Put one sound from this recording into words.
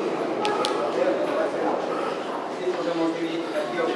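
A group of adults talk among themselves in a long echoing tunnel.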